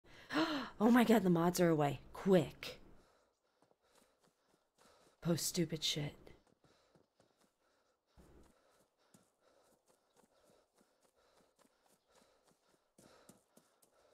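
Footsteps crunch on gravel and through dry grass.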